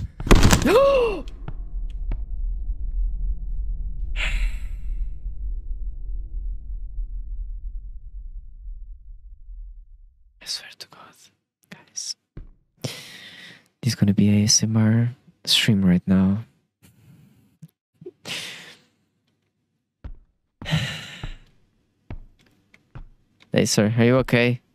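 A young man talks and exclaims with animation, close to a microphone.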